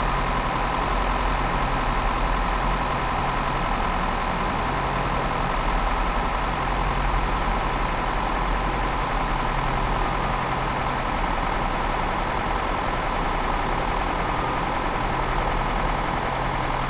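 A train rolls slowly past with a steady low hum.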